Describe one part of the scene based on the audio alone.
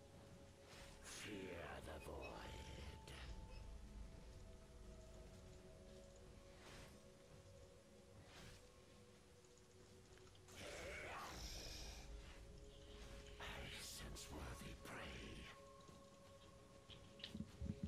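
Game spell effects whoosh and burst in a fight.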